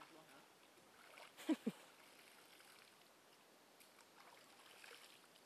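Water splashes as a man scoops it onto his face.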